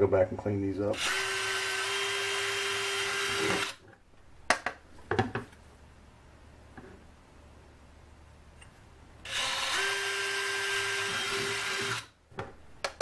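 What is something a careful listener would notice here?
A cordless drill whirs steadily as it bores through wood, in two bursts.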